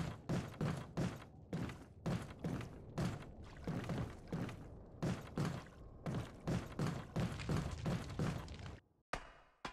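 Heavy footsteps thud steadily on a wooden walkway.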